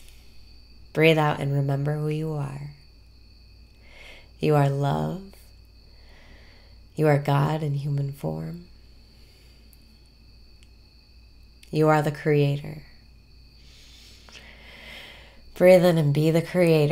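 A young woman speaks cheerfully close to a microphone, in short bursts with pauses.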